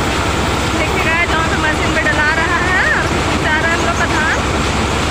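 A man calls out over the noise of a machine.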